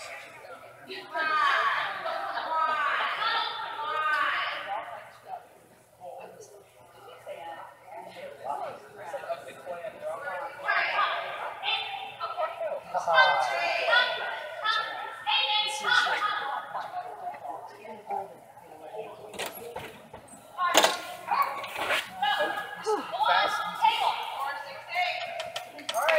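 Dogs bark loudly in a large echoing hall.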